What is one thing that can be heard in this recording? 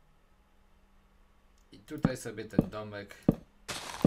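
A wooden block thuds as it is placed.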